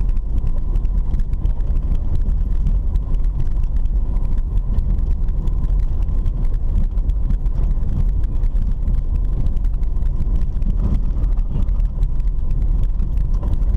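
A car body rattles and bumps over an uneven road.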